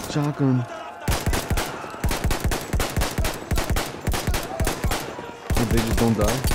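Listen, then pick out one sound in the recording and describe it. A pistol fires rapid shots close by.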